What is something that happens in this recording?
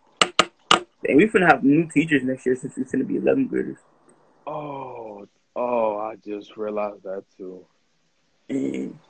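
A young man sings close to a phone microphone.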